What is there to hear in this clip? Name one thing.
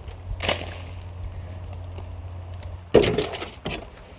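Soil drops from a shovel onto the ground with a thud.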